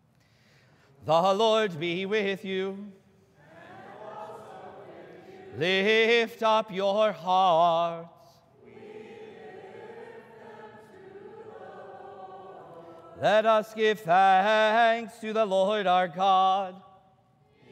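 A man chants a prayer in a singing voice through a microphone, echoing in a large room.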